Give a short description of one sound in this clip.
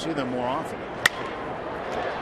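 A wooden bat cracks against a baseball.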